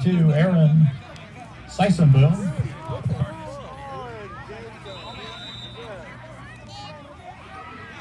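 Many people chatter and call out at a distance outdoors.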